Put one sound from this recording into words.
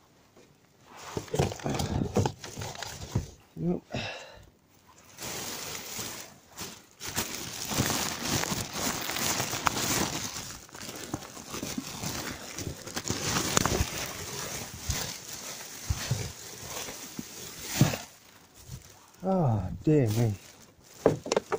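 Plastic bags rustle and crinkle loudly close by.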